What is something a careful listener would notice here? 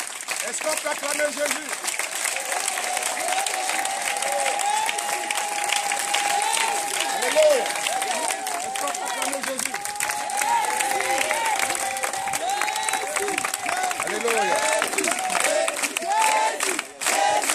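A crowd of people sings loudly together outdoors.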